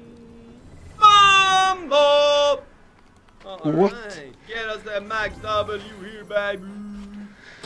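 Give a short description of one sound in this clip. A man talks excitedly over a microphone.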